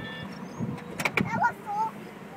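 A crossing gate arm clunks as it rises.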